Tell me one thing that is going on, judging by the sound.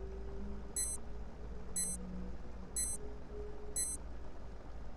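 A short electronic beep sounds once each second.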